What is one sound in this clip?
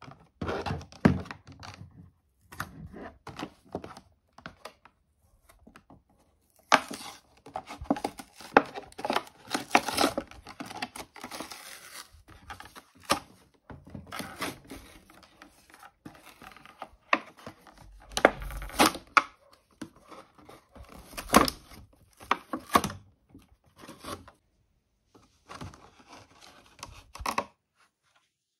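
Plastic packaging crinkles and rustles under handling.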